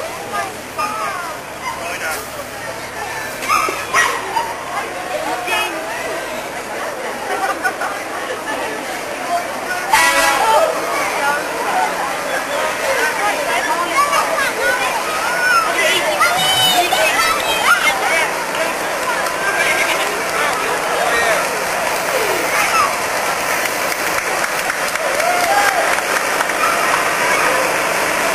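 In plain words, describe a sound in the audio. A crowd of people chatters outdoors along a street.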